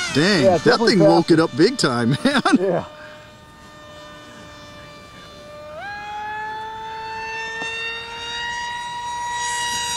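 A jet engine whines high overhead, its pitch rising as it passes.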